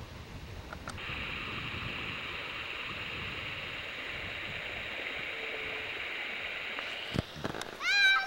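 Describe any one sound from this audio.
River water rushes over rocks.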